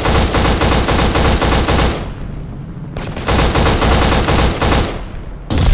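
An automatic rifle fires rapid bursts of loud shots close by.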